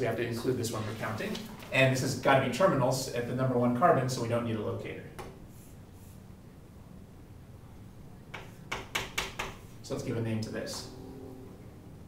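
A man lectures calmly nearby.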